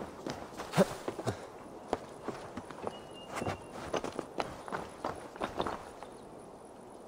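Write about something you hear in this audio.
Footsteps crunch on soft ground.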